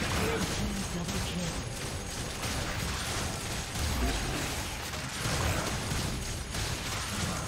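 Magic blasts and weapon hits crackle and whoosh in a fast fight.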